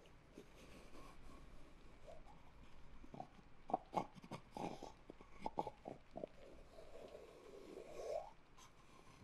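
Fingers tap and scratch close to a microphone.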